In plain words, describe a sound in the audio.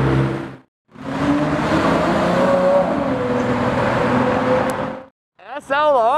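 A sports car engine rumbles loudly as the car drives past.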